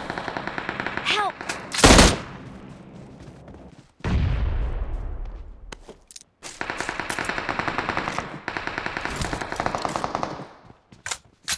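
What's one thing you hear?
Footsteps run quickly over grass and soft ground.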